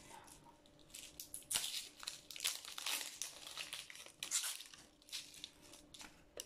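A plastic wrapper crinkles in someone's hands.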